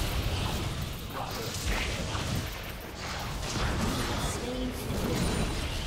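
Fantasy game combat effects clash, zap and whoosh in quick bursts.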